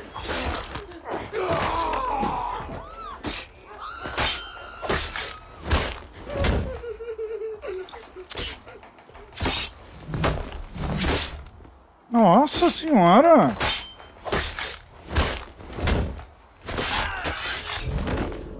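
Heavy blows land in a close fight, with sharp thuds and cracks.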